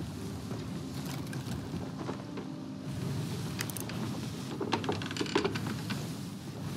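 Rough sea waves roar and wash steadily close by.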